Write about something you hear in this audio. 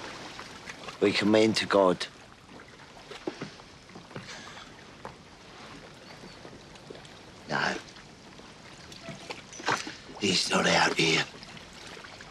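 A middle-aged man speaks in a strained, anguished voice.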